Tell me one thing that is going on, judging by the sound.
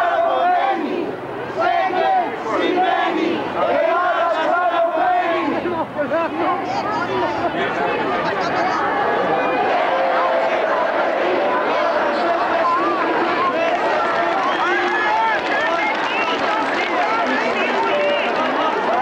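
A large crowd of men and women chants and sings together outdoors.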